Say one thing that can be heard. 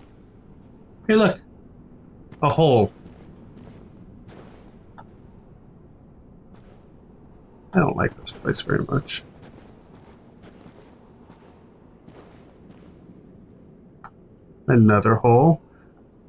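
A man talks briefly into a close microphone, with pauses between his words.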